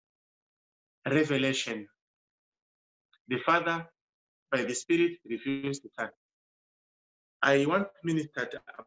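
A middle-aged man speaks calmly in short phrases, heard through an online call.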